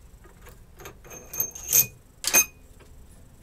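A metal rod taps and clinks against a metal pump.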